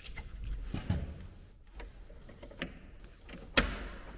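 A metal door knob rattles and turns.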